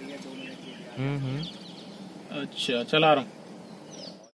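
A man talks on a phone.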